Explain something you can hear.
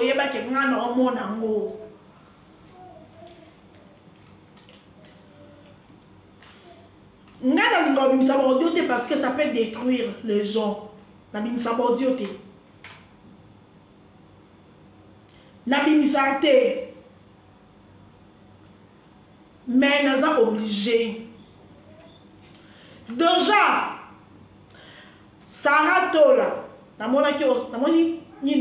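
A young woman speaks close by in bursts, with pauses between phrases.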